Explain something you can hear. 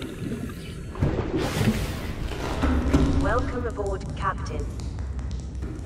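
Bubbles gurgle and rush through water.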